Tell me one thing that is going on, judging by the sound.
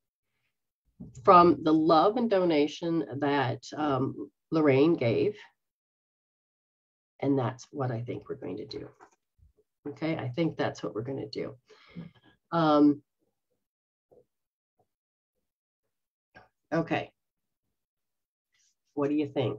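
A middle-aged woman talks calmly and expressively, heard through an online call.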